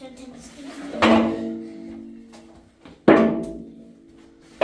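A basin knocks and clatters on the floor.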